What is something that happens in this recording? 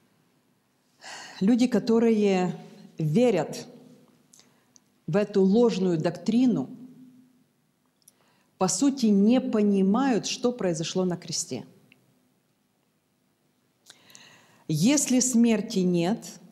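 A woman speaks calmly into a microphone, heard through loudspeakers in an echoing hall.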